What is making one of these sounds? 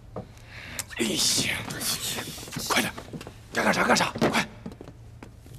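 A young man speaks quickly and urgently.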